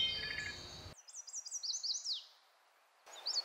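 A small bird sings a quick run of high sweet notes.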